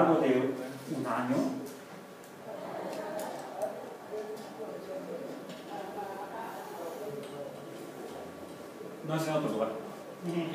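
A man speaks calmly, heard from across a room with some echo.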